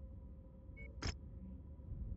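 A soft electronic click sounds.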